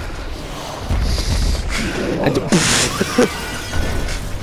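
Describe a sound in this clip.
A large glass window shatters.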